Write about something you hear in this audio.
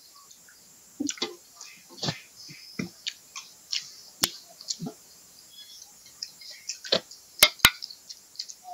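Grapes are plucked and chewed with crisp crunching.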